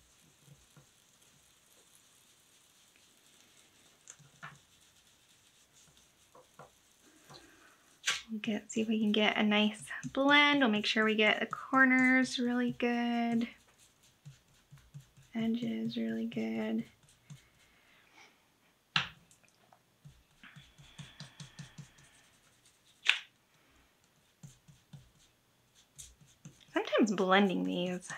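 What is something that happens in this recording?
A foam applicator softly dabs and pats on paper.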